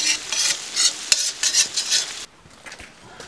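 Food sizzles loudly in hot oil.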